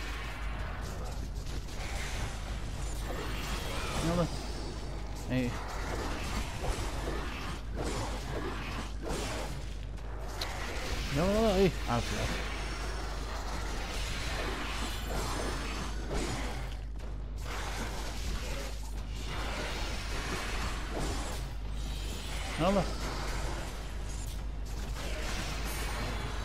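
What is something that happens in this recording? Blows strike enemies with wet, heavy impacts.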